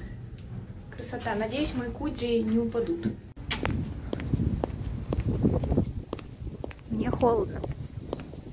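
A young woman speaks close to the microphone with animation.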